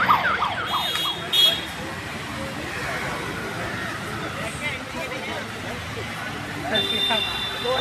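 Auto-rickshaw engines idle and rumble nearby.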